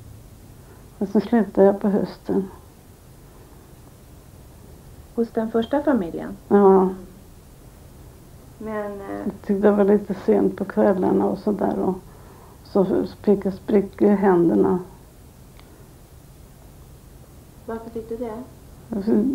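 An elderly woman speaks calmly and haltingly close by, with pauses between phrases.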